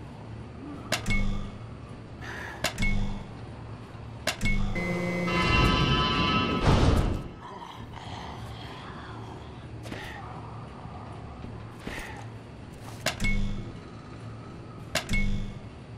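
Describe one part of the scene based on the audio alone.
A panel beeps in short tones.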